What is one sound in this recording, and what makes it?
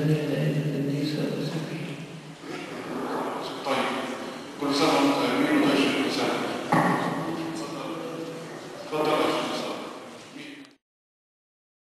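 Several men chant together in an echoing hall.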